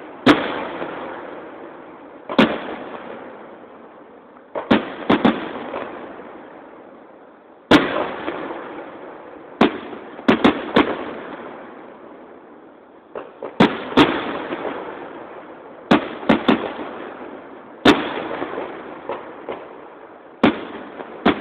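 Fireworks burst with loud booming bangs that echo and crackle away.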